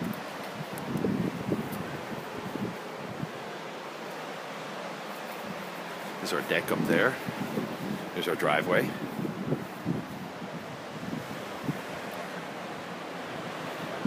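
Waves wash onto a shore in the distance.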